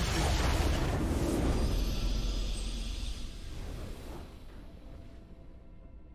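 A triumphant victory fanfare swells and then fades.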